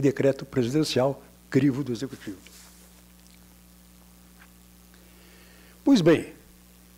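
An older man speaks calmly into a microphone, with pauses.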